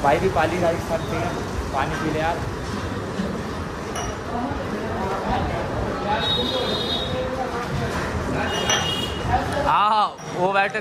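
Voices and clatter fill a busy, echoing room.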